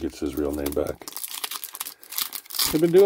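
A foil wrapper crinkles close by.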